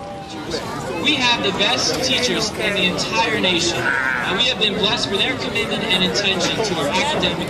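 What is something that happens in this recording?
A man speaks steadily through a loudspeaker.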